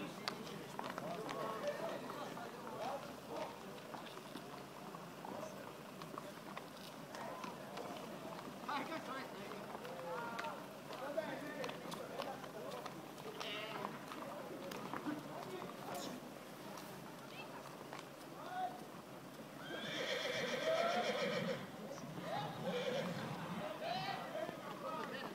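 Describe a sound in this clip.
A crowd of men and women talk outdoors.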